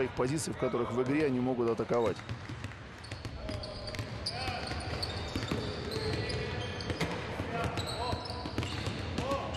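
Basketballs bounce on a hard floor in a large echoing hall.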